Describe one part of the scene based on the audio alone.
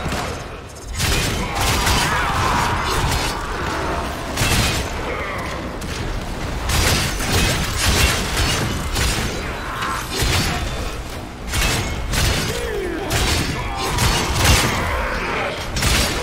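Weapons fire in rapid bursts with loud zapping blasts.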